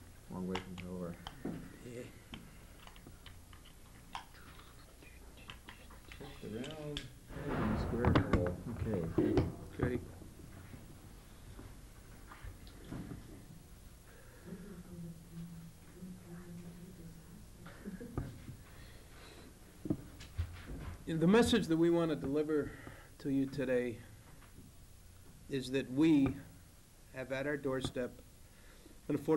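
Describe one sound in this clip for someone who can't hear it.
A middle-aged man speaks calmly into microphones, with pauses.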